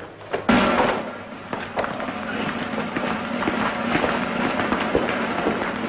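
Footsteps tramp across a hard floor.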